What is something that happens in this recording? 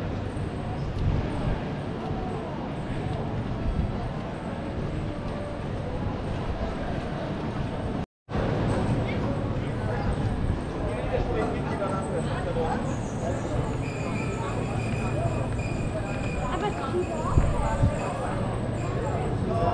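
Many people chatter in the background outdoors.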